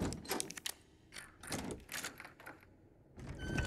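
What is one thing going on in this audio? A key turns in a door lock with a metallic click.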